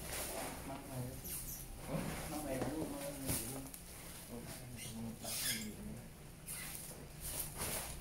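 A heavy case bumps and thuds on a hard floor.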